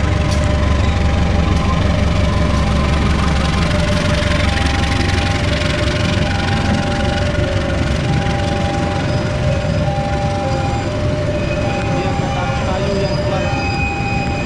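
Train wheels clatter and rumble over the rails steadily.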